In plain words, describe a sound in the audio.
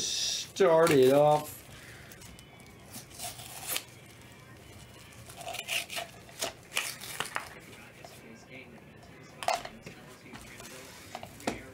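A plastic wrapper crinkles and tears.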